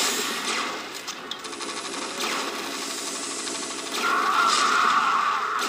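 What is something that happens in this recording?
Gunfire rattles in a game.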